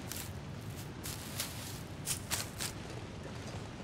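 Reeds rustle and snap as they are pulled.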